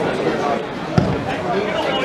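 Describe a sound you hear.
A football is kicked hard with a thud.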